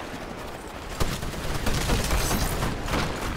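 Automatic rifle fire bursts out in a video game.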